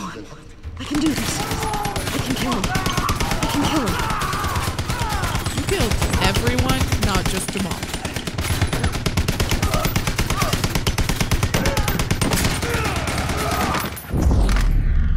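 Automatic gunfire rattles rapidly and loudly.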